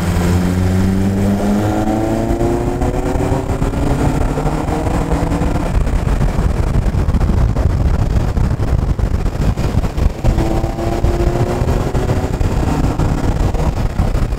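A car engine hums and rises in pitch as it speeds up.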